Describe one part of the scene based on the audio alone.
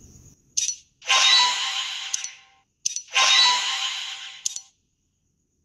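A bright game reward jingle sparkles and chimes.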